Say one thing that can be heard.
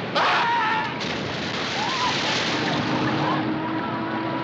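Water churns and splashes loudly.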